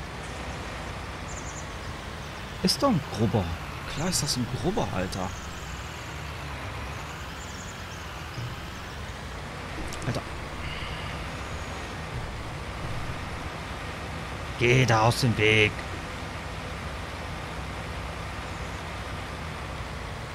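A tractor engine hums steadily at low speed.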